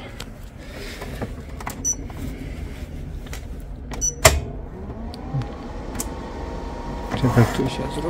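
Buttons click on a device as a finger presses them.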